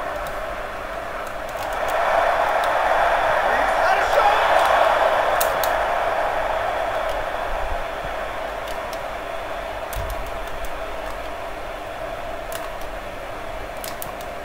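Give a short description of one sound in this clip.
A large stadium crowd roars steadily, swelling louder and then slowly easing off.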